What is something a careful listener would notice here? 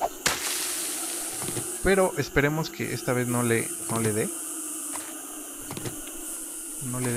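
Footsteps rustle through grass.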